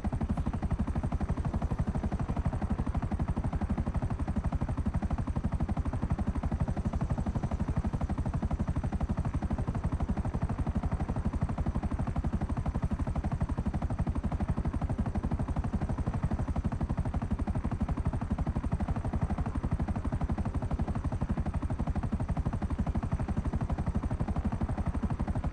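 A helicopter's rotor thumps steadily with a loud engine drone.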